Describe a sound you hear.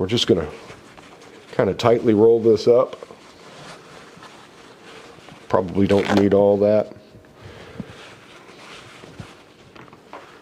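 A paper towel rustles as it is folded and rolled.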